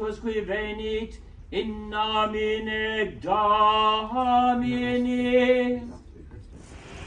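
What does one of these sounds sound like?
A man chants in a slow, sung voice in an echoing room.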